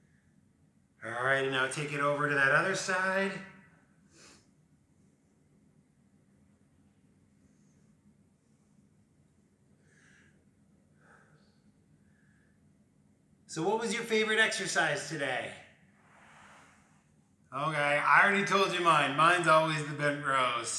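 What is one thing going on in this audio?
A man speaks calmly through a microphone, giving instructions in short bursts.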